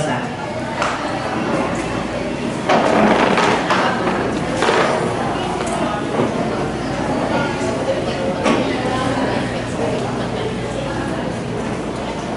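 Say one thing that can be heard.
Men and women talk and chatter nearby.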